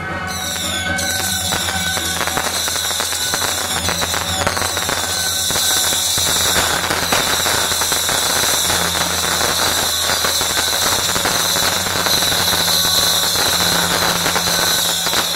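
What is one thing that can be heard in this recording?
Firecrackers crackle and pop rapidly in the street.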